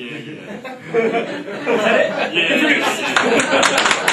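A man speaks to an audience.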